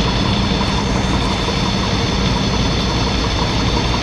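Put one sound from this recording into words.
An excavator bucket scoops and splashes in wet mud.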